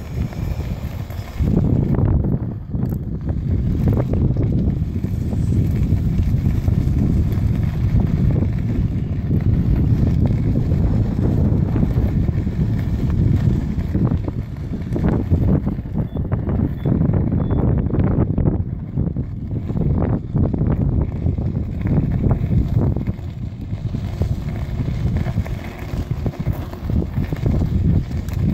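An electric unicycle's tyre rolls fast over a gravel path, crunching and rattling.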